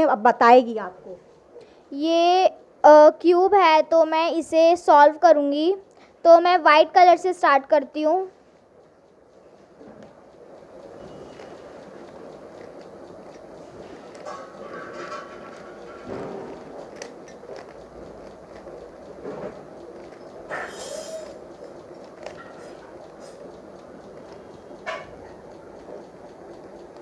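A puzzle cube clicks as its sides are turned.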